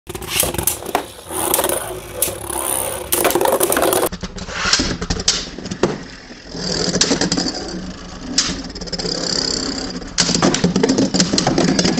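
Spinning tops clash together with sharp clicks.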